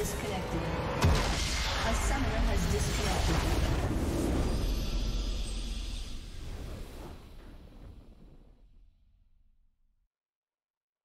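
A triumphant victory fanfare swells and fades.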